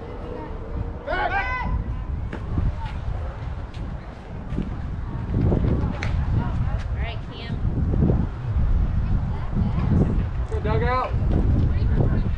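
Players shout across an open field.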